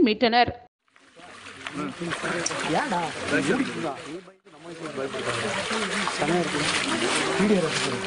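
Water splashes as a stick pokes into a shallow stream.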